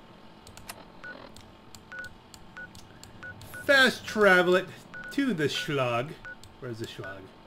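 Short soft electronic beeps tick as a menu is scrolled.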